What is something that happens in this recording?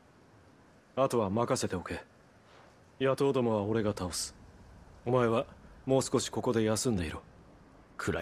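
A young man speaks calmly and close by in a low voice.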